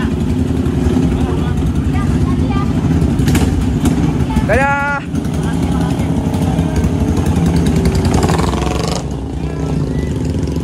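Motorcycle engines rumble and idle nearby.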